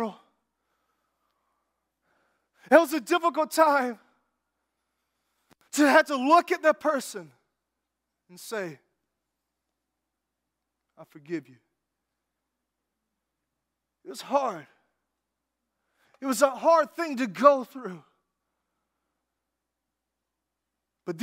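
A man speaks to an audience through a microphone, in short bursts with long pauses.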